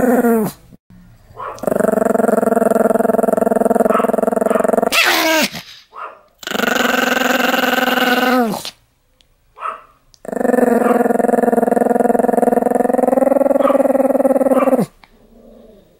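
A small dog makes long, steady howling grumbles close by, again and again.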